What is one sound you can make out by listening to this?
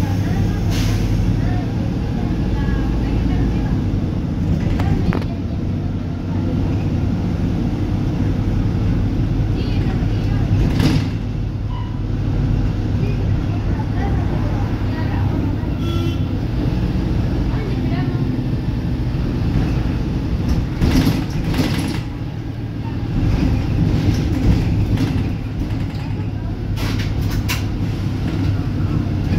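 A vehicle engine rumbles steadily from inside while driving.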